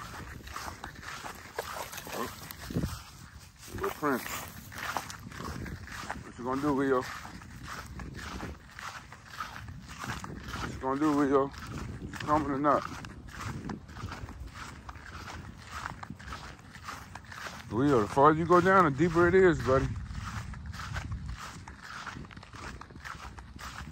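Dogs run through dry grass.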